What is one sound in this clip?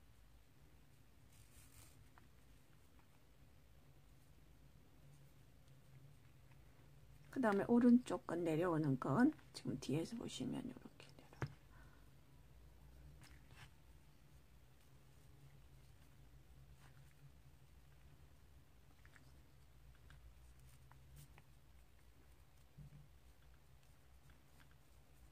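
Fingers rustle softly as a cord is pulled through a knot.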